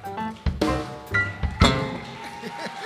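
A banjo is strummed with bright, ringing chords, then stops.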